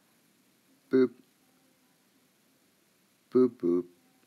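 Electronic beeps sound as buttons are pressed in a game.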